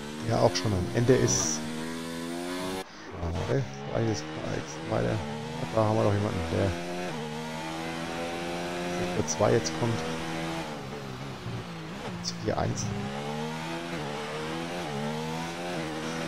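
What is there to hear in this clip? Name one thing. A racing car engine screams at high revs, rising and dropping in pitch as it shifts gears.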